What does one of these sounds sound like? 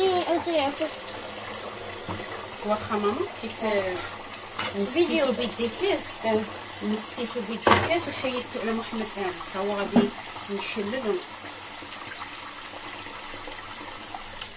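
Water runs from a tap and splashes into a sink.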